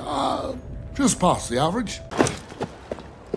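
A heavyset man talks wearily.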